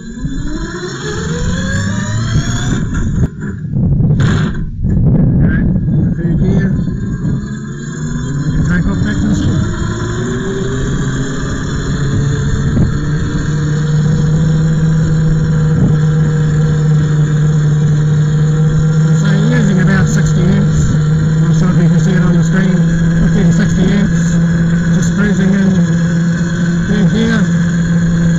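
Tyres rumble over a rough lane.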